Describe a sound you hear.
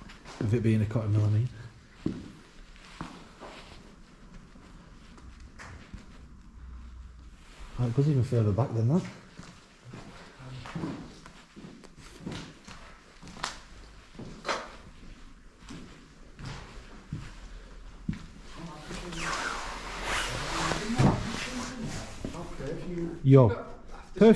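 Debris crunches and scrapes underfoot.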